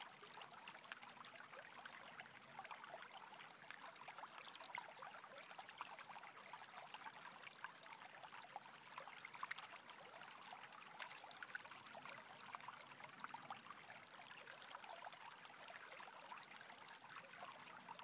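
A shallow stream rushes and splashes over rocks.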